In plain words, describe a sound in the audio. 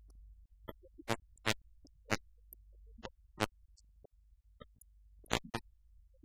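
Footsteps cross a room.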